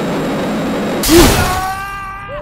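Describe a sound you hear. A loud thud rings out as a car launches into the air.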